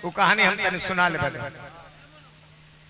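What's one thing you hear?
A man sings loudly through a microphone and loudspeakers, with a ringing echo.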